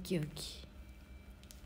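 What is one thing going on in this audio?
A young woman speaks briefly and softly close by.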